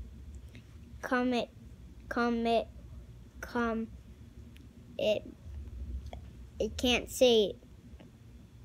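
A young boy talks close by in short bursts.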